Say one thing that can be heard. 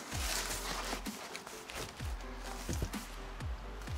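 Papers and cardboard rustle as they are shifted about.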